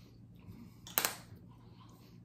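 A bottle cap clicks open.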